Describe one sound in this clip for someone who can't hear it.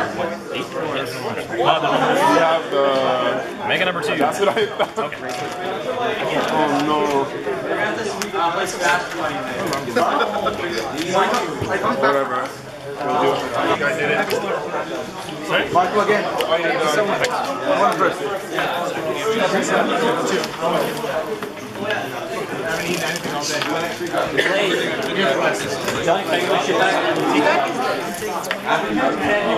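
Young boys talk to each other at close range.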